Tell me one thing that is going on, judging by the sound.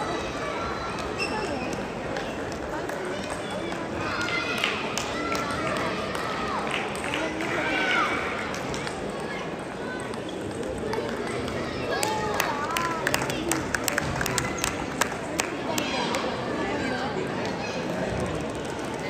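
Table tennis balls click on tables and paddles, echoing in a large hall.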